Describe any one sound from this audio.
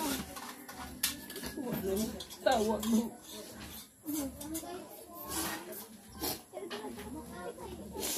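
An elderly woman sobs and weeps close by.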